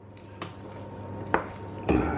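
A wooden spoon scrapes and thumps against a metal pot.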